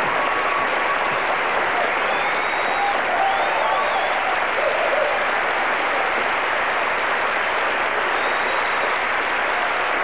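People in a crowd cheer and whoop.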